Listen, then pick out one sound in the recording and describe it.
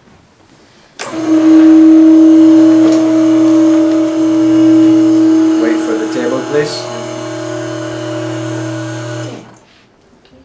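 An electric motor hums steadily as a treatment table tilts.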